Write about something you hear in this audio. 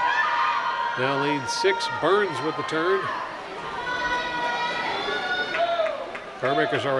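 A crowd of young people shouts and cheers.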